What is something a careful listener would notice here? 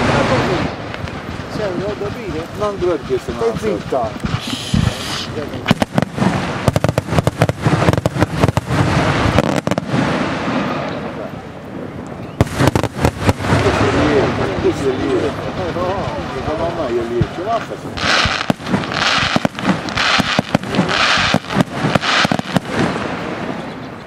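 Fireworks crackle and pop rapidly in the night sky.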